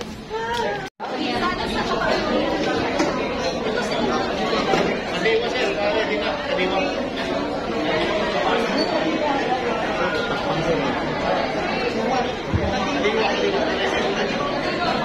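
A crowd of people chatter in a room.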